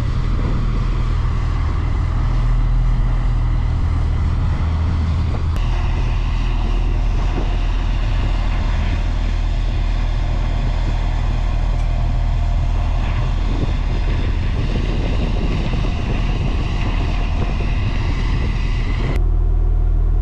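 A heavy armoured vehicle's diesel engine rumbles loudly and steadily.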